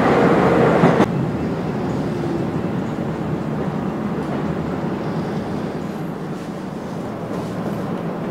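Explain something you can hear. A train slows and quietens as it pulls into a station.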